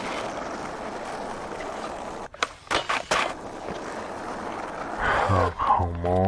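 A skateboard grinds along a metal rail.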